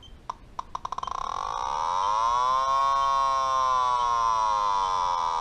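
A gas detector sounds a loud, wavering alarm tone.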